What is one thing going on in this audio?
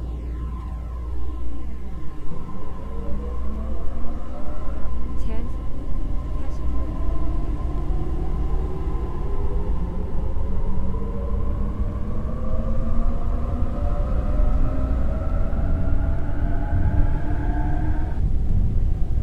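An electric train pulls away, its motor whining higher and higher as it speeds up.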